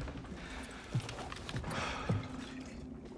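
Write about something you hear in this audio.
A man gulps from a bottle.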